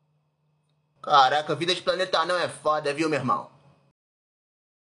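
A man speaks with animation, close to the microphone.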